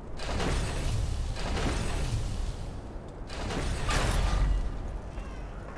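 Heavy stone platforms grind and rumble as they slide into place.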